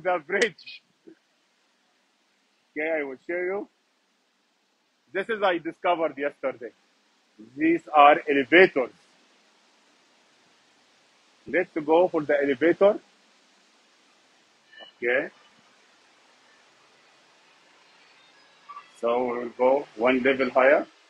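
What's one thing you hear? A middle-aged man talks cheerfully and close by, in short bursts.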